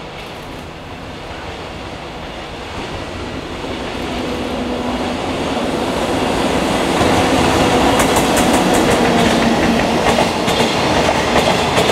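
A freight train approaches and rumbles past close by, growing louder.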